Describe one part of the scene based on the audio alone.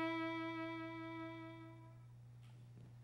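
A violin plays a sustained note and stops.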